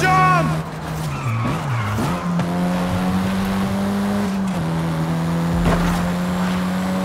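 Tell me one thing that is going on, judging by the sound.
A car engine roars steadily, dropping in pitch between gear changes and climbing again.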